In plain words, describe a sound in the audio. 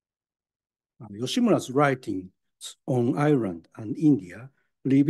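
A man speaks calmly into a microphone, as in a lecture.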